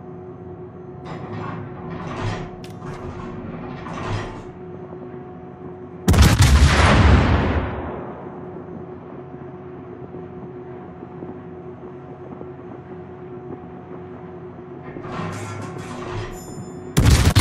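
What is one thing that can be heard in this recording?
Shells burst in a rapid string of distant cracks.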